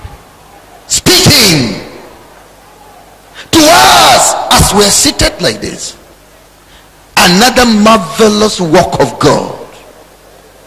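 A man preaches loudly and with passion through a microphone, in bursts with pauses, in a reverberant hall.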